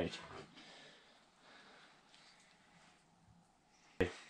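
Raw bacon rustles softly as it is peeled apart by hand.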